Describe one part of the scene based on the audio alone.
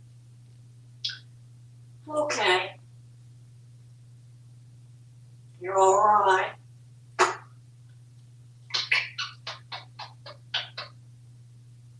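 A parrot squawks and chatters close by.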